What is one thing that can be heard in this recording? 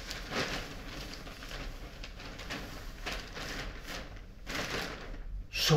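Stiff paper rustles and crinkles under hands close by.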